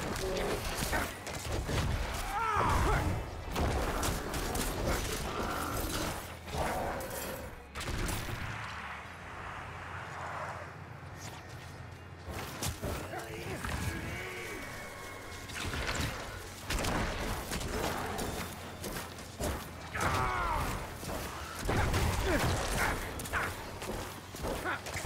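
Game combat sounds clash and thud.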